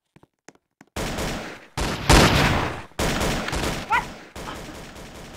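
Gunshots boom in rapid bursts.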